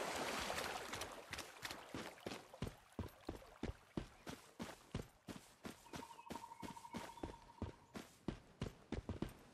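Footsteps crunch over stones and grass.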